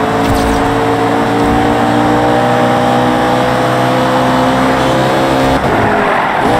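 A racing car engine roars at high speed, its pitch slowly rising, then dropping briefly as it shifts gear.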